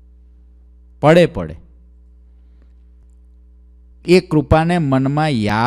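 A man speaks slowly and melodically into a close microphone.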